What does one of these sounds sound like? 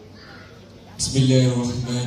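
A man's voice rings out loudly through a loudspeaker in a large hall.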